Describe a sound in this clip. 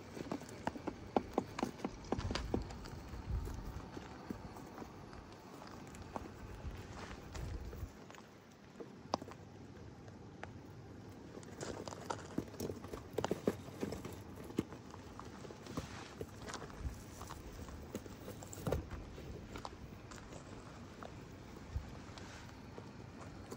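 Plastic tyres scrape and knock against rock.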